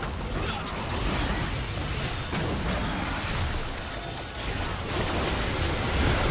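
Game spells whoosh and explode in a busy battle.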